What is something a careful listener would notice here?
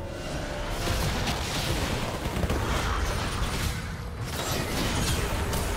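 Spell effects burst and crackle in a fast game fight.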